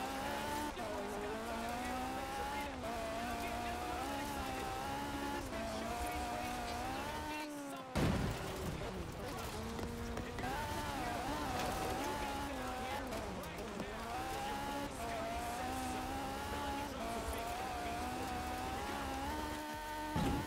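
Tyres crunch and rumble over gravel.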